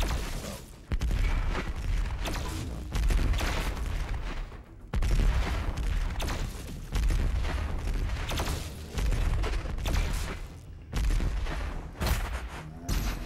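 A heavy gun fires loud booming blasts every couple of seconds.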